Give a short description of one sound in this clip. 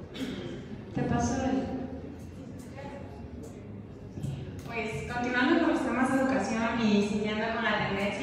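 A young woman speaks through a microphone in a large echoing hall.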